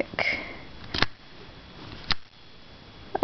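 Phone keys click under a finger.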